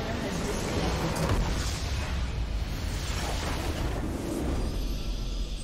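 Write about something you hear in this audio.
A base crystal shatters with a loud explosion.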